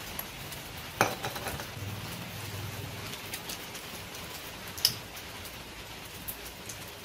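A metal tool clanks against an engine.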